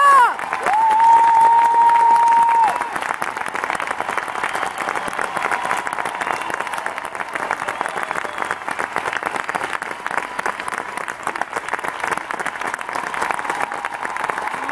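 A large crowd cheers and claps loudly in a big echoing hall.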